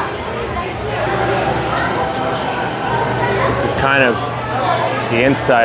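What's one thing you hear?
A crowd murmurs in the background of a busy room.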